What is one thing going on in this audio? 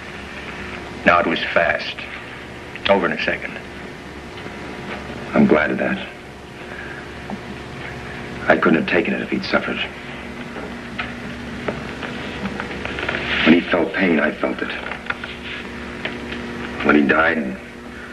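Another man replies calmly nearby.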